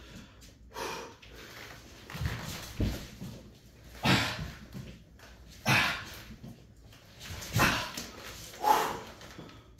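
Dumbbells knock against a rubber floor.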